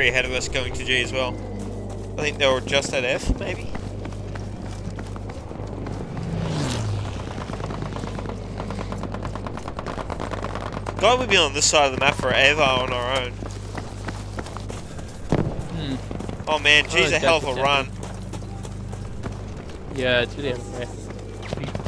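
Footsteps run quickly over sand and gravel.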